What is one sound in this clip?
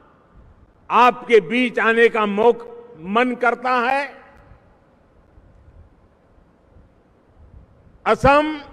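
An elderly man speaks forcefully in short bursts into a microphone over a loudspeaker outdoors.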